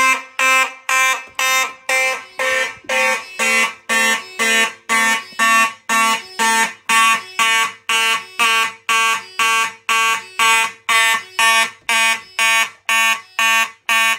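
A fire alarm horn blares loudly in rapid, evenly spaced pulses.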